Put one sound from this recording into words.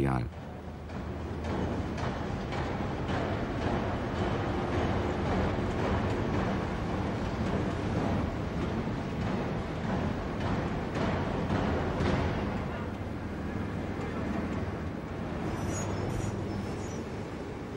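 Heavy machinery rumbles steadily in a large echoing hall.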